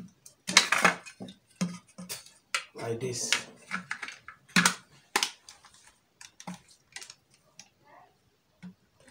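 Plastic fittings click and clatter as they are handled.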